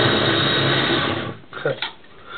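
A small food processor whirs loudly, then stops.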